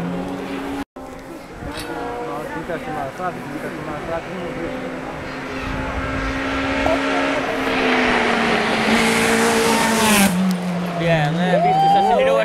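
A racing car engine revs hard as the car approaches at speed.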